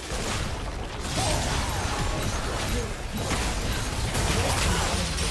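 Game spells and weapon hits clash in a busy battle.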